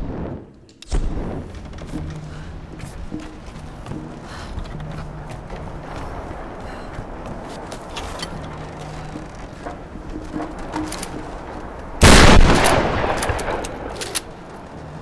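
Footsteps thud on wooden boards and stone.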